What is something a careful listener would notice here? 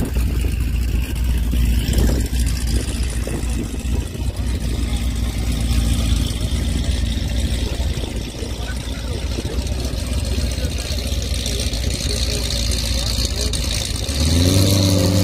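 Race car engines idle and rumble outdoors in wind.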